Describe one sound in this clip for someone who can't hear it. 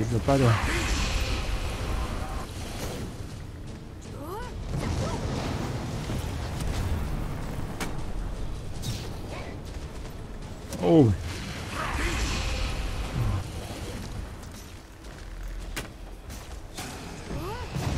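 Magic spells crackle and burst in a fantasy game.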